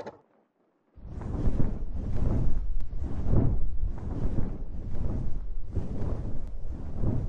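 Wind rushes steadily past a gliding flier.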